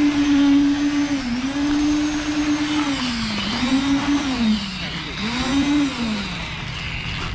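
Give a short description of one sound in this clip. A concrete vibrator motor whines, its pitch dipping and rising.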